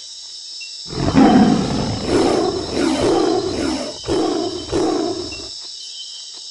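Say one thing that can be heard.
A tiger growls and snarls loudly.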